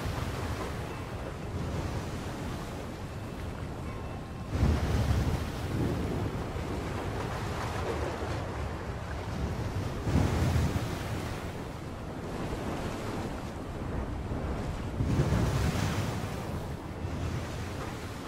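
Rough sea waves surge and crash in repeated swells.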